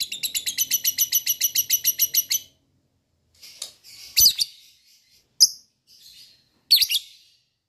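A small parrot chirps in a rapid, shrill trill, then gives sharp squawks.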